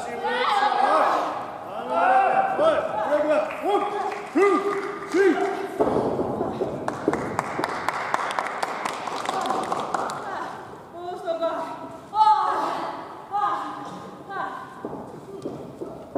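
A young woman shouts loudly in a large echoing hall.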